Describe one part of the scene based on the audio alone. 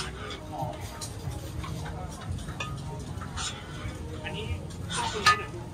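A ladle scrapes and clinks against a metal pot.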